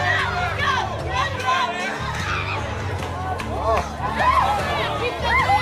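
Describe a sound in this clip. A crowd outdoors cheers and shouts with excitement.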